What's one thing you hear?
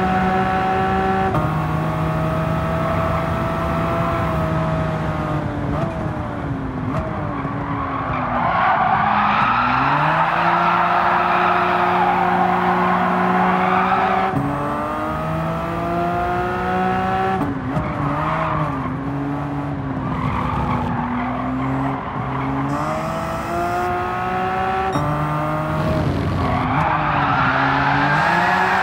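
A racing car engine revs high and drops as gears shift.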